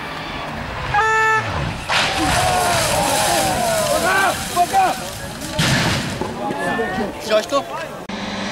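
A rally car's exhaust pops and bangs.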